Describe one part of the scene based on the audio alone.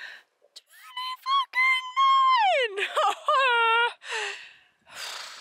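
A young woman wails in a high, drawn-out voice close by.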